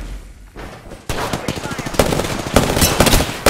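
Rapid gunshots fire in bursts.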